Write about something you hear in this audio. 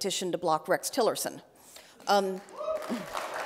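A woman speaks calmly through a microphone in a large echoing hall.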